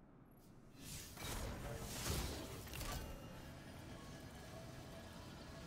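A vehicle engine whooshes and roars as it speeds away.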